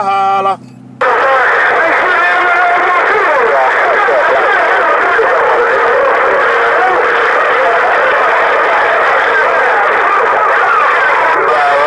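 Loud radio static hisses and warbles steadily.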